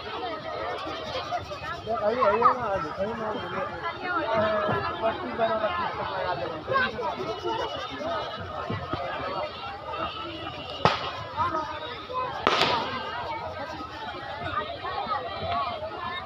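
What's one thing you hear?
A crowd of women and children chatter nearby outdoors.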